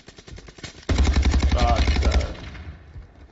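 Rapid gunfire rattles in a quick burst.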